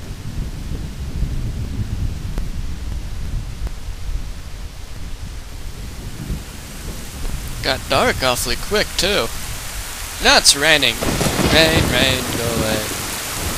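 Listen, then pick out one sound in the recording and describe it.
Torch flames crackle softly.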